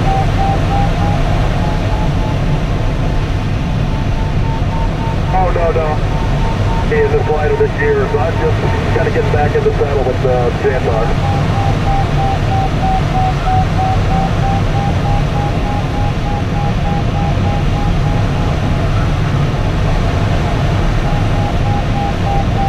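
A glider's variometer gives a steady electronic tone that slowly shifts in pitch.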